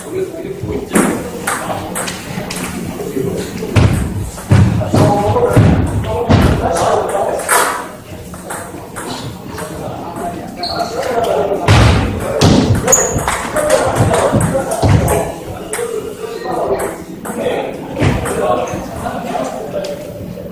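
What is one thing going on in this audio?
A ping-pong ball clicks back and forth across a table.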